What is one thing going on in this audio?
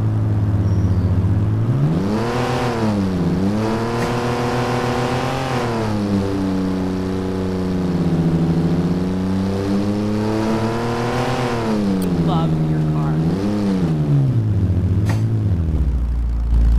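A car engine revs up and down as the car drives.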